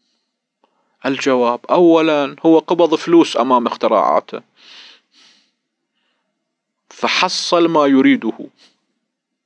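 A middle-aged man speaks calmly and closely into a microphone, with pauses.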